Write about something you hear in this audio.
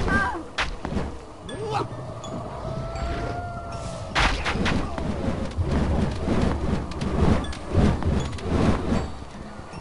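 Blades swish and strike during a fight.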